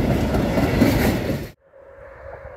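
A freight train rumbles past close by, its wheels clattering on the rails.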